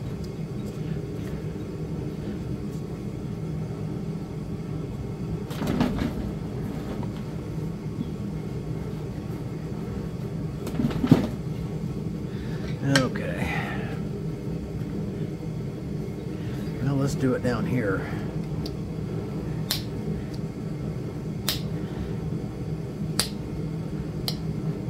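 An electric burning pen hums steadily and low.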